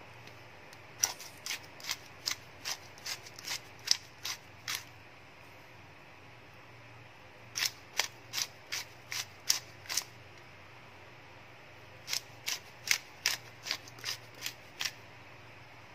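A salt grinder crunches in quick bursts.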